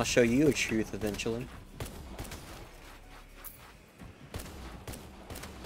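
Sharp electronic zaps of video game gunfire ring out.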